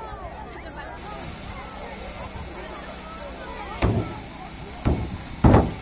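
A fire extinguisher hisses loudly as it sprays.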